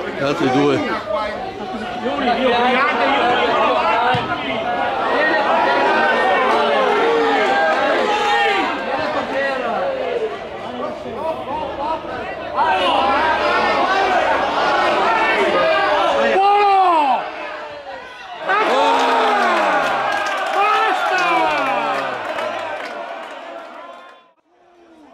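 Football players shout and call out to each other across an outdoor pitch.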